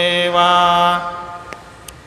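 A man chants in a steady voice through a microphone.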